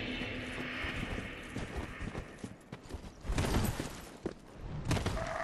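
Footsteps crunch on leaves and gravel.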